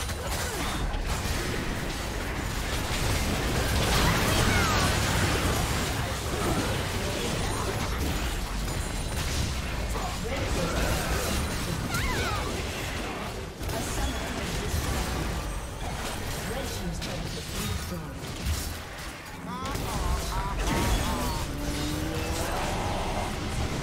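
Spell effects crackle and burst during a video game battle.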